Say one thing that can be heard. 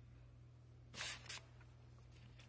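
Paper pages rustle as a sketchbook is handled.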